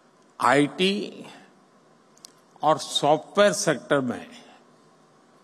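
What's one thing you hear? An elderly man speaks calmly and deliberately into a microphone.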